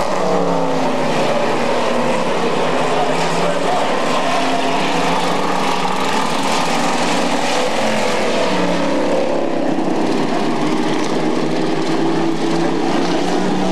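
Race car engines roar loudly, revving up and down as they pass.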